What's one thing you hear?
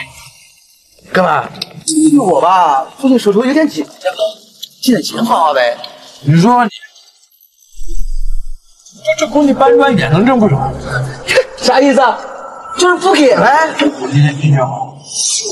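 A man speaks in a pleading, whining voice close by.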